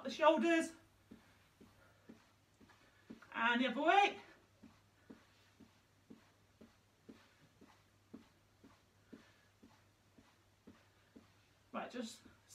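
Feet thump softly on the floor as a woman jogs on the spot.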